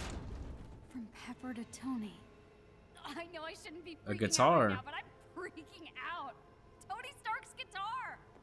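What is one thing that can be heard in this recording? A young woman speaks excitedly, close by.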